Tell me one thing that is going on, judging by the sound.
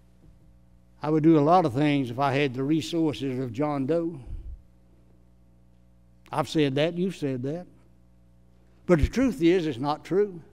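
An elderly man speaks calmly and deliberately into a microphone, heard through a sound system.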